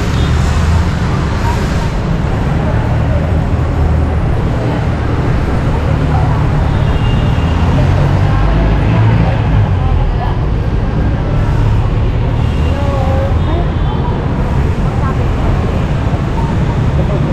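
Motorcycle engines buzz past close by.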